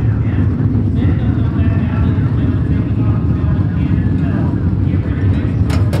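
A race car engine idles with a deep, loud rumble close by.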